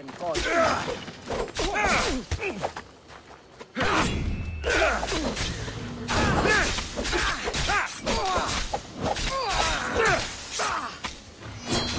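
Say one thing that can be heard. Metal blades clash and ring in quick bursts.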